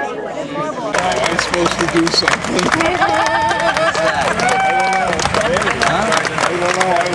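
A crowd claps and cheers outdoors.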